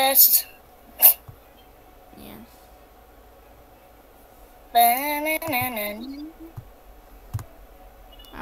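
Short soft clicks sound as a game menu is tapped.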